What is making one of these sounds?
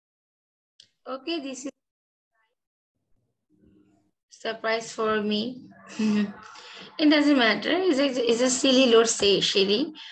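A young girl speaks with animation over an online call.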